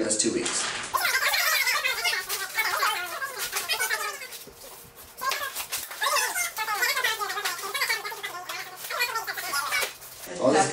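Plastic bags rustle and crinkle as people rummage through them.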